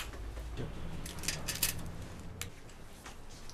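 Glass bangles clink as they are handled.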